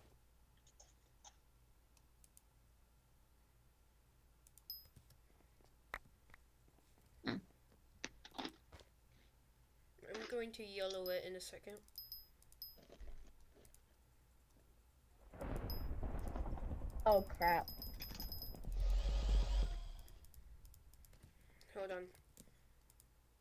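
Soft clicks sound as items are picked in a game menu.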